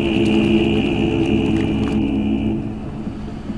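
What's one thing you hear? A motorboat engine roars as the boat speeds across the water.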